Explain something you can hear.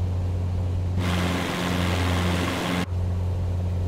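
A propeller plane roars loudly as it flies by.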